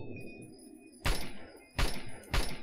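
A shotgun fires loud booming shots.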